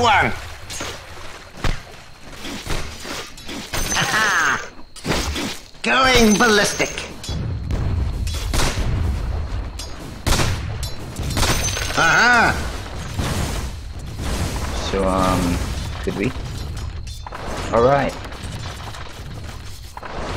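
Game weapons clash and thud in a fight.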